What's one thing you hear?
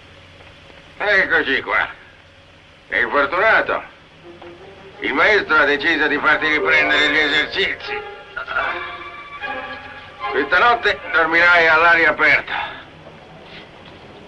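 A man speaks in a stern, low voice in an echoing room.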